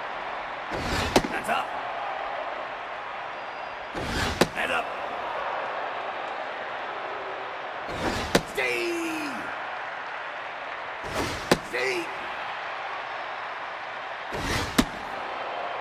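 A baseball smacks sharply into a catcher's mitt, again and again.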